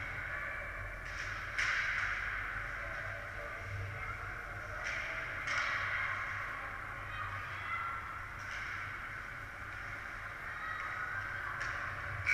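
Ice skates scrape and swish across the ice in a large echoing rink.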